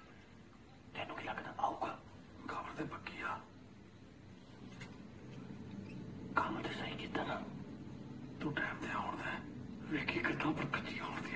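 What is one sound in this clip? A man speaks in a low, tense voice, close by.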